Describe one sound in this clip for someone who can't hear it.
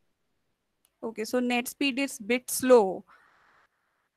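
A young woman speaks briefly through an online call.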